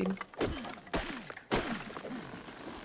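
A pickaxe strikes wood with sharp knocks.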